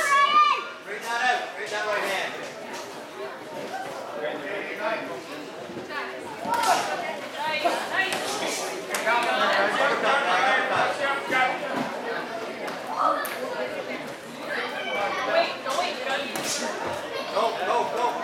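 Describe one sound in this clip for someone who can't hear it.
A small crowd of spectators calls out.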